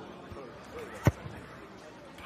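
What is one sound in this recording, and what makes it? A rugby ball is kicked with a thud.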